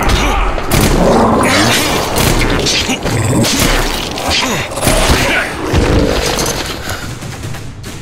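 A monster roars and snarls up close.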